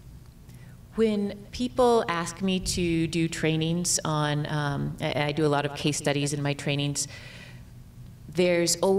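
A woman speaks calmly into a microphone, heard through a loudspeaker in a room.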